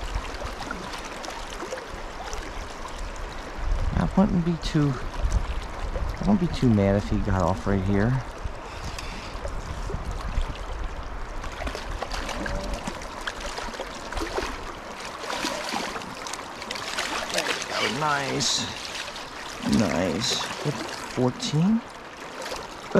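A river flows steadily nearby.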